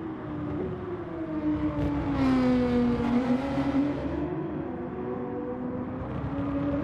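Racing car engines roar and rev, rising and falling in pitch.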